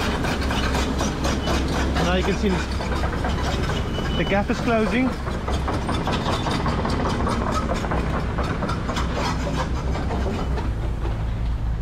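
A heavy diesel engine rumbles steadily nearby.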